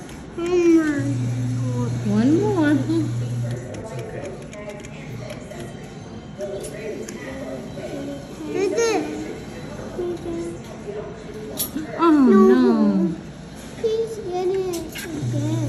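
A claw machine hums and whirs as the claw moves.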